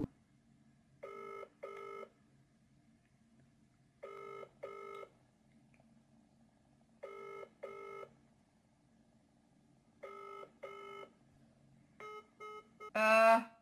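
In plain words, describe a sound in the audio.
A phone's ringing tone beeps repeatedly through its speaker.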